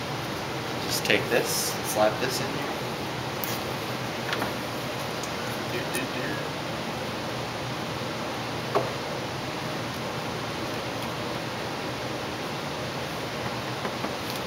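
Plastic parts knock and rattle as an air filter housing is handled.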